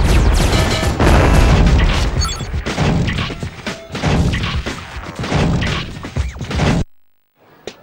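Loud blasts and rapid gunfire boom and crackle.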